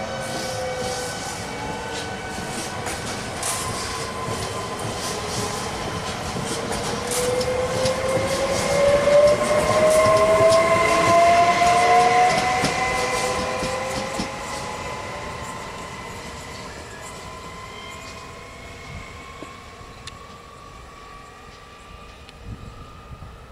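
An electric passenger train passes close by, its motors whining, and pulls away into the distance.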